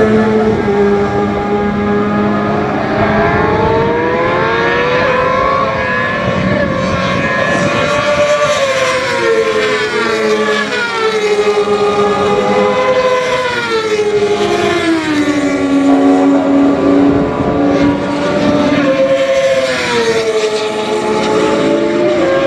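Racing motorcycle engines roar past, their pitch rising and falling as they shift gears.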